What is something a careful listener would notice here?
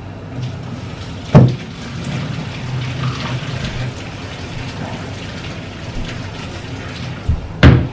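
A sponge scrubs a pan.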